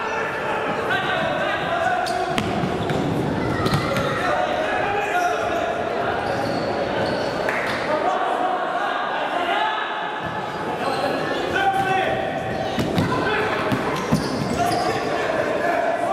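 A futsal ball is kicked in an echoing sports hall.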